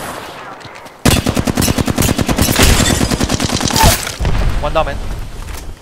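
An automatic rifle fires in rapid, loud bursts.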